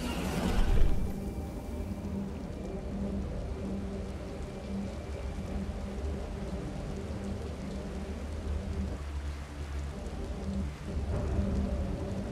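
A hovering bike engine hums steadily.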